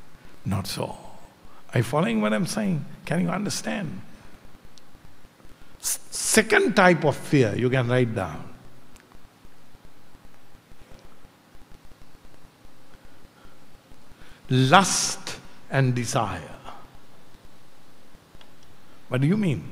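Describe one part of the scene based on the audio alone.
An elderly man speaks with animation into a microphone, with long pauses.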